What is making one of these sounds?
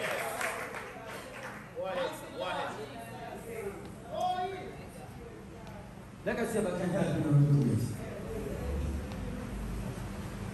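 A man preaches with animation through a microphone and loudspeakers in an echoing hall.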